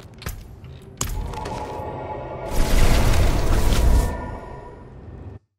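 A magical teleport whooshes and rumbles loudly.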